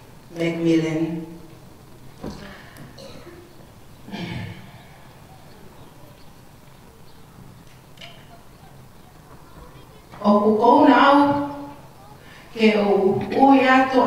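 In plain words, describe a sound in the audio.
A middle-aged woman speaks slowly into a microphone, with pauses.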